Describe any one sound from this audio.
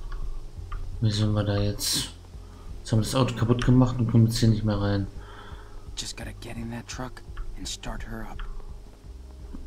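A young man speaks tensely and quietly, close by.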